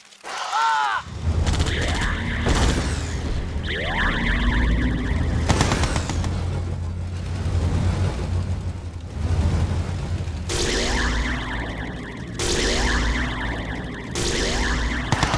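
Gunfire and explosions rumble steadily in a battle.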